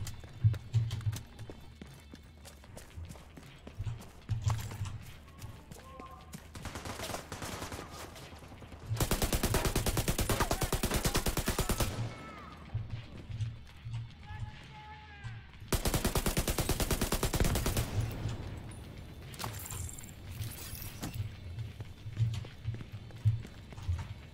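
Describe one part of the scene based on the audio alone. Footsteps thud on pavement.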